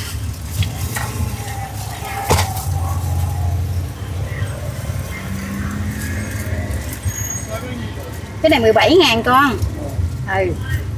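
Banana leaves rustle and crinkle as they are handled.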